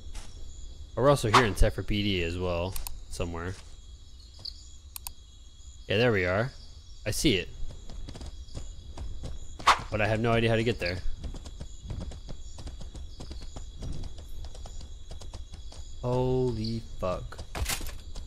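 A young man talks casually into a close microphone, in short bursts.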